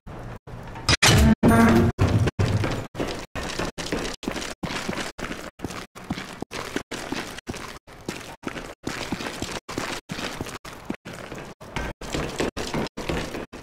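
Footsteps clang on metal stairs and walkways.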